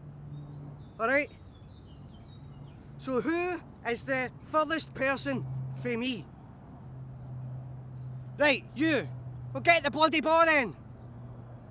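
A middle-aged man speaks loudly and firmly outdoors.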